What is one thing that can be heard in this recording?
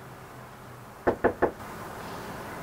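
A young woman knocks on a wooden door.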